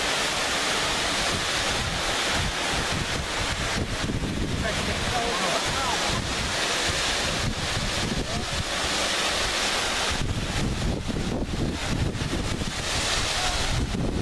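A middle-aged man talks calmly outdoors.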